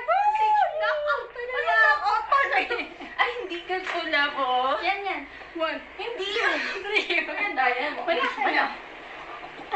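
A young woman shouts excitedly close by.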